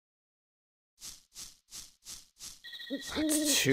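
Light footsteps patter on soft ground.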